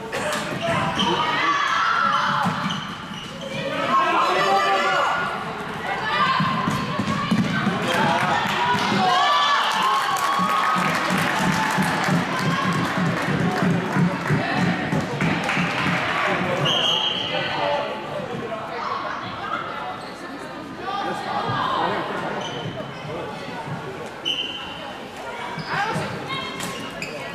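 A crowd of spectators talks and cheers in a large echoing hall.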